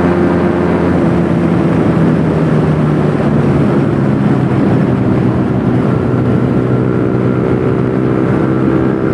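A motorcycle engine drones loudly at high speed, its pitch dropping slightly as it slows.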